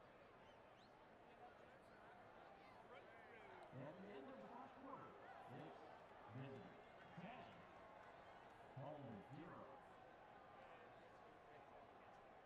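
A large crowd cheers and murmurs steadily in a stadium.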